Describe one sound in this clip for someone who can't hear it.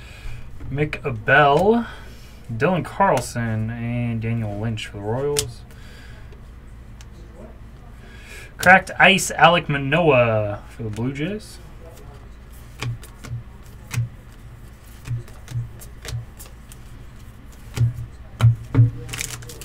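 Trading cards flick and slap softly as they are shuffled by hand.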